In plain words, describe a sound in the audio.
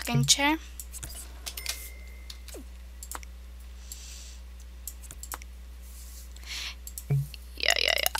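Short game interface clicks sound as furniture is placed.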